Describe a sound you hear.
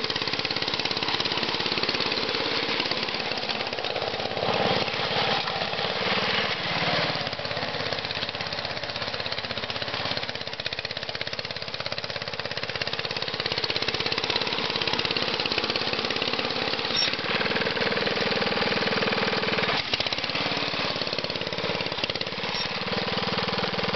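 A small petrol engine runs loudly with a steady rapid chugging, close by.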